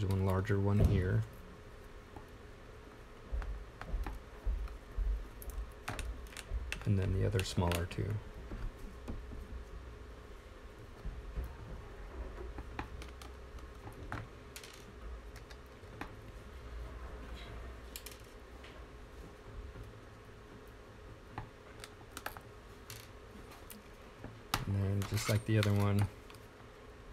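A small screwdriver clicks and scrapes against plastic and metal parts.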